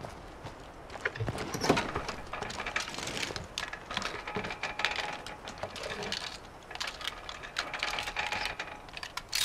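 Items rustle and clatter as a car is searched.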